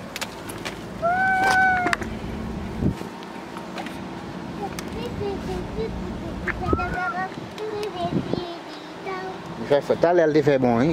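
A young child babbles up close.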